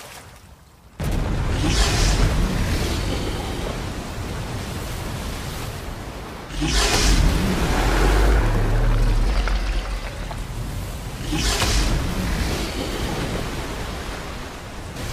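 Water rushes and churns nearby.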